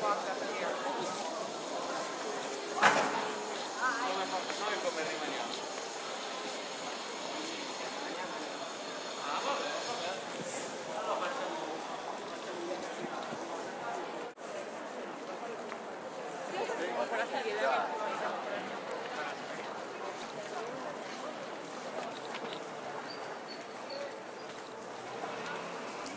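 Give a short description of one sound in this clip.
Footsteps shuffle along a paved street.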